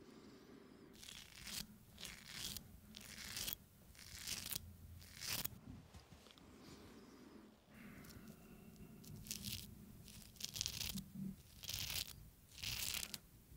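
A razor blade scrapes in short strokes close to a microphone.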